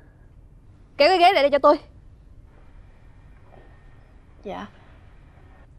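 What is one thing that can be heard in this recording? A young woman speaks sharply, close by.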